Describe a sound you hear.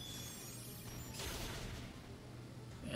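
A shimmering magical blast sparkles and whooshes.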